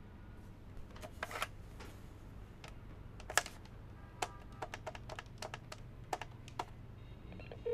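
Buttons click as a desk phone is dialled.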